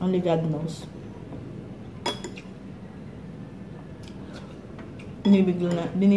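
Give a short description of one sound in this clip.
A spoon clinks against a bowl.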